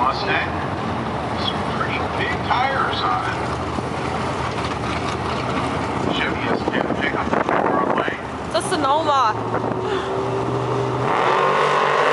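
Powerful car engines idle with a loud, rough rumble.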